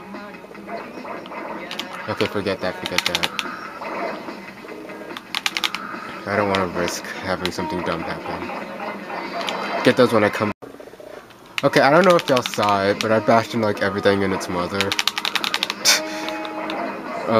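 Upbeat video game music plays throughout.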